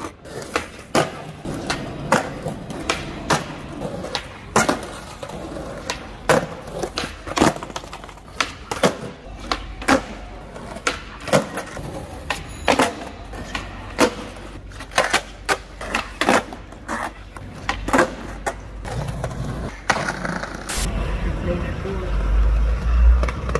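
A skateboard's wheels roll and rumble over pavement.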